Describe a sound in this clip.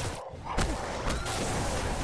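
Electric energy crackles and hisses.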